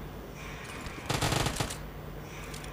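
A gun fires a short burst of shots.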